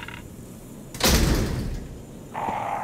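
A metal gate clangs.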